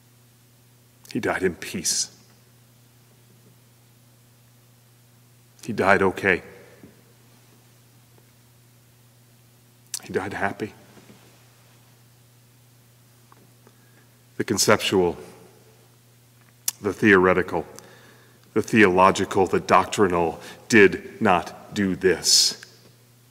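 A middle-aged man speaks slowly into a microphone, with pauses between phrases.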